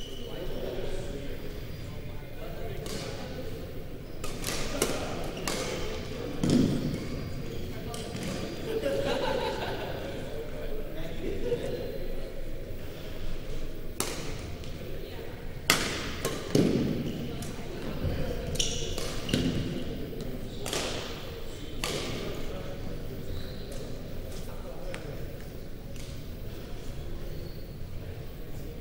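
Young people chat in the background of a large echoing hall.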